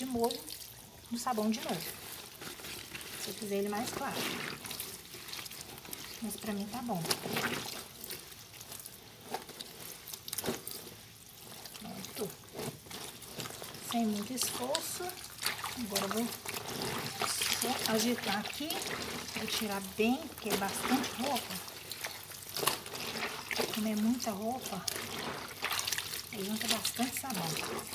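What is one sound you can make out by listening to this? Wet clothes squelch and slosh as they are scrubbed by hand in water.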